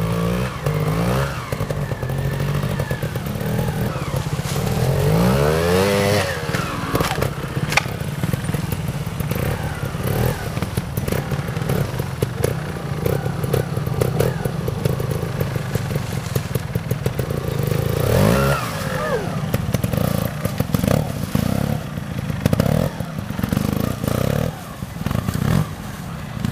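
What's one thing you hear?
A motorbike engine putters and revs in short bursts.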